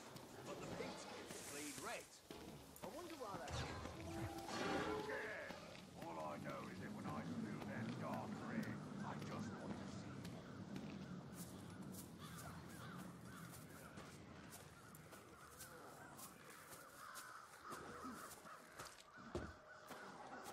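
Footsteps crunch softly through grass.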